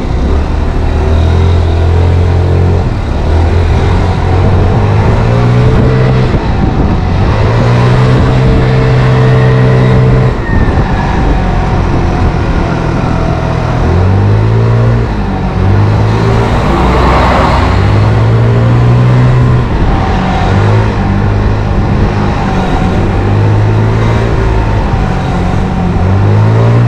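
A scooter engine hums and revs up and down while riding.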